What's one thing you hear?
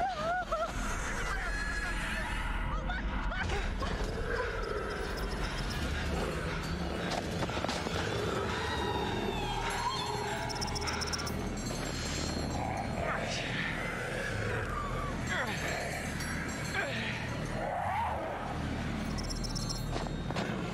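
Wind blows through a snowy outdoor place.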